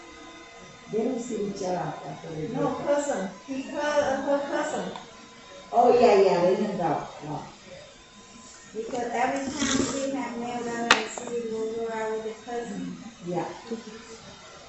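A woman talks nearby in a calm, chatty voice.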